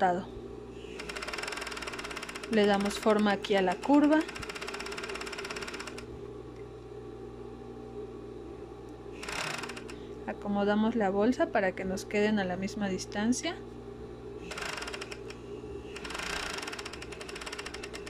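A sewing machine whirs and stitches in short bursts.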